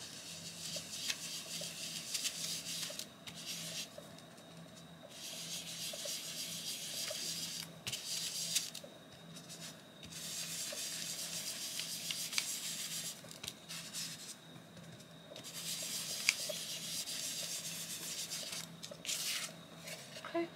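A pen scratches across paper in short bursts.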